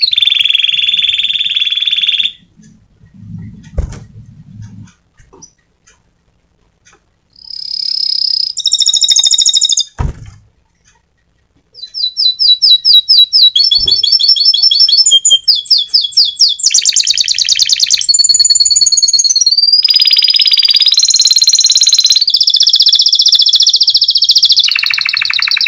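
A small bird sings loud, rapid trills and chirps close by.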